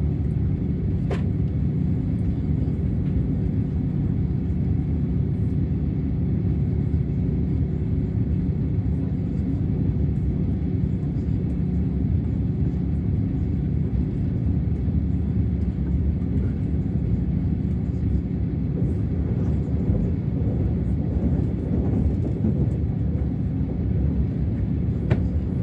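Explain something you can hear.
A train rumbles steadily as it travels.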